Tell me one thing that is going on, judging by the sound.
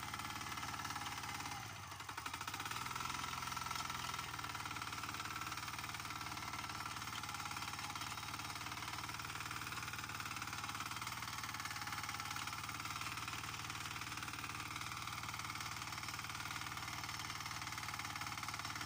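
A small petrol engine runs loudly and steadily.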